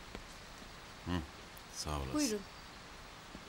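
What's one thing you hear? A woman speaks briefly and calmly.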